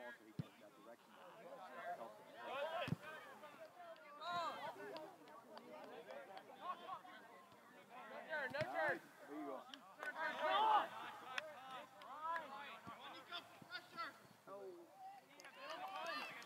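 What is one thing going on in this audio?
A crowd of men and women shout and cheer outdoors.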